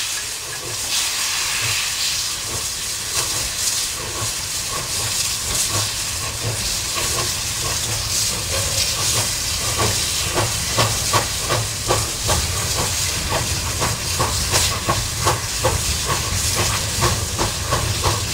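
A steam locomotive chugs past in quick, heavy beats.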